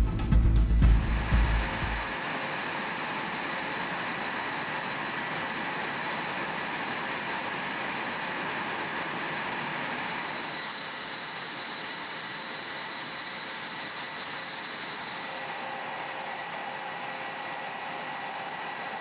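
Jet engines whine steadily nearby.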